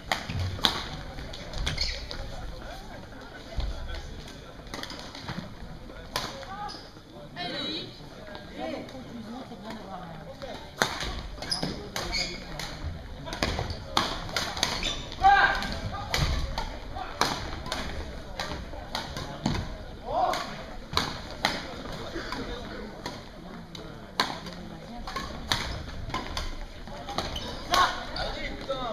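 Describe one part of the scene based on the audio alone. Shuttlecocks are struck with rackets in sharp pops in a large echoing hall.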